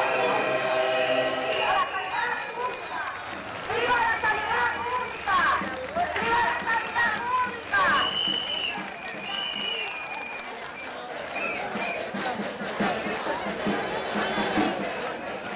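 A large crowd of protesters chants and shouts loudly outdoors.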